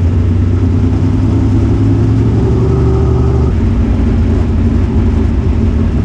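A race car engine roars loudly up close, then drops in pitch.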